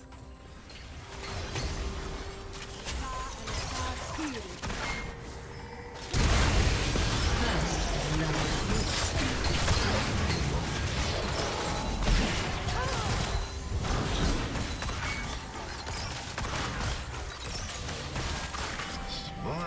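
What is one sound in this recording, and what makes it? Game spell effects crackle and burst as characters fight.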